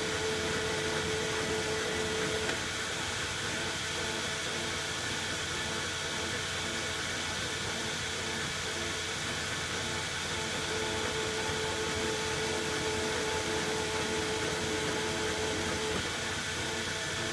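A machine motor whirs steadily.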